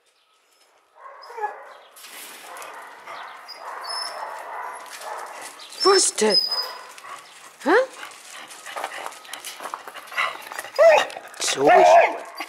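A dog's paws crunch on gravel.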